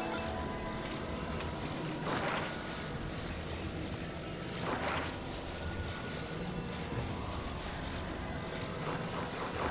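A magical beam hums and crackles steadily.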